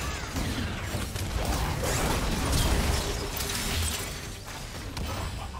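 Game characters' attacks clash with sharp hits.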